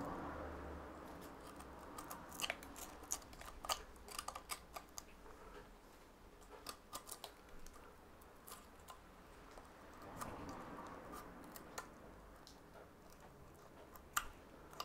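A knife scrapes and shaves wood in short strokes.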